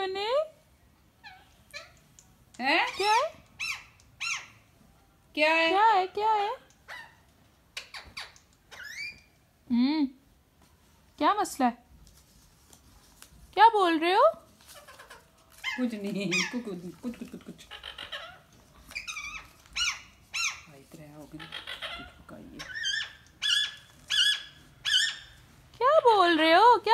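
A parrot squawks and chatters in loud bursts close by.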